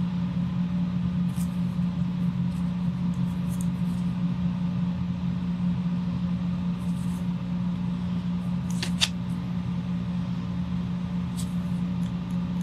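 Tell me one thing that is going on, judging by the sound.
A pen scratches softly across paper in short strokes.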